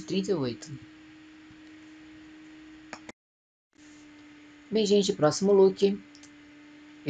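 A young woman speaks briefly and close by.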